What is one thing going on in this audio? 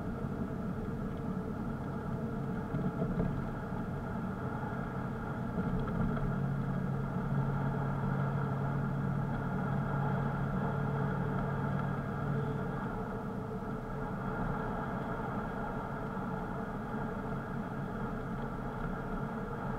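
Tyres rumble on asphalt.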